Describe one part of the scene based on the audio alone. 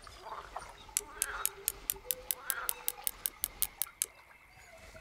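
A fishing reel clicks rapidly as it is wound in.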